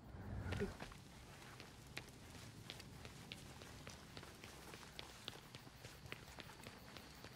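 Footsteps run quickly across wet paving stones.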